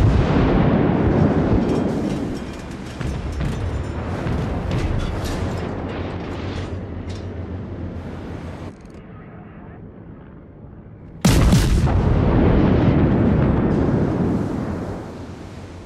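Heavy naval guns fire with deep, rumbling booms.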